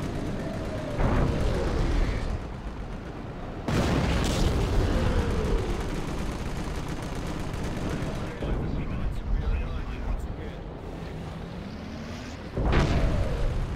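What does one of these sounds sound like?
Explosions boom heavily, several times.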